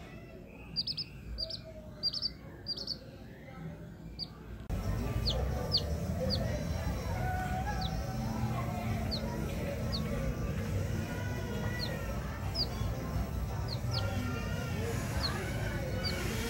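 A young quail chirps in short, high peeps.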